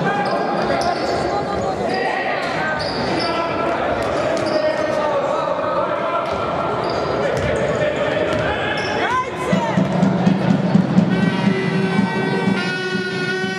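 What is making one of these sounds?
A crowd of spectators cheers and chatters in a large echoing hall.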